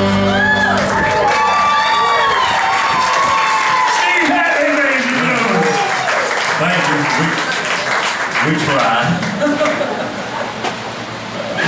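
A live band plays loud, upbeat music.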